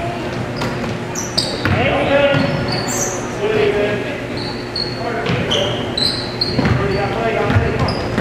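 Sneakers squeak on a hardwood floor in a large echoing hall.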